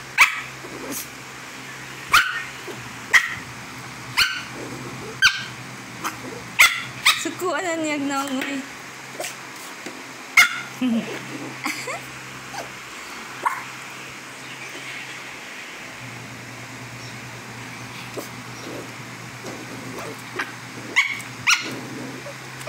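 A small dog's claws tap and scratch close by.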